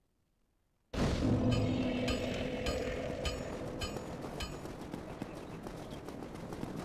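Armoured footsteps run on stone.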